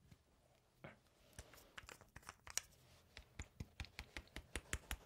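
Fingernails tap rapidly on a small glass bottle.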